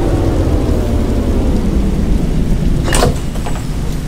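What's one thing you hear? A bus engine winds down as the bus slows to a stop.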